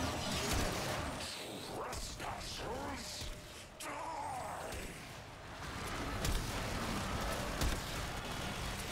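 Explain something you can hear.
Energy blasts boom and crackle rapidly.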